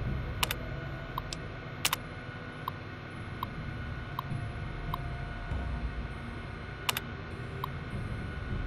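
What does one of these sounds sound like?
A computer terminal beeps softly as lines of text print out.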